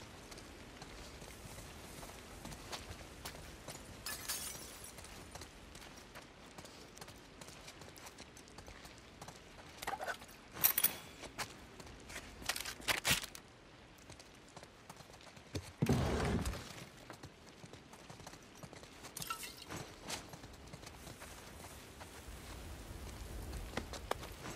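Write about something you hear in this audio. Footsteps scuff softly across a hard floor.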